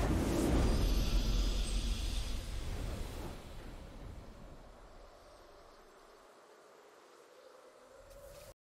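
A triumphant fanfare of music plays and fades.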